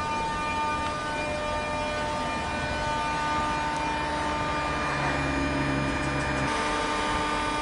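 Train wheels rumble and clatter over the rails close by.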